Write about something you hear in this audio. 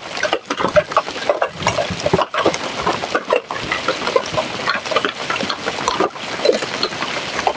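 Hail patters and rattles densely on the ground nearby.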